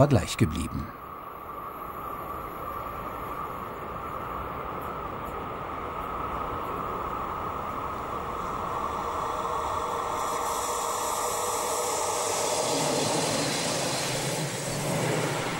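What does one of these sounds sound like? An electric train approaches and grows louder.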